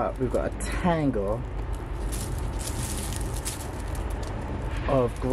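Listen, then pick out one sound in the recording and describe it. Dry grass stems rustle and crackle as a hand brushes through them.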